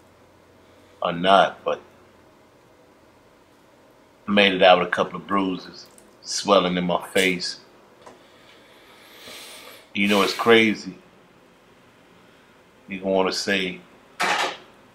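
A man speaks calmly and close up, in short phrases with pauses.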